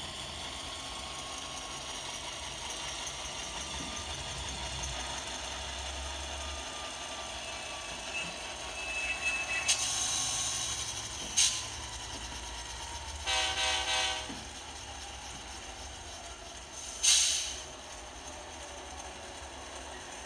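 A small electric motor whirs steadily.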